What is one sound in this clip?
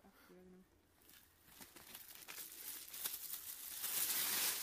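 Gear and dry leaves rustle close by.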